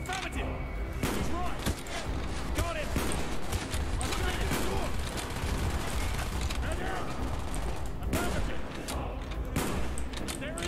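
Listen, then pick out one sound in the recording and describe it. Sniper rifle shots crack loudly, one after another.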